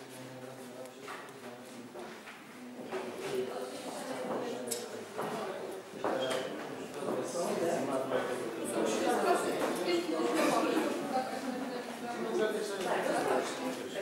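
Small tiles tap as they are set down on a flat top.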